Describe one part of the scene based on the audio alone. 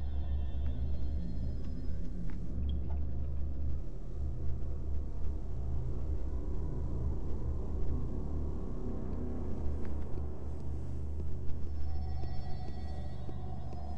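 Soft footsteps pad across a tiled floor.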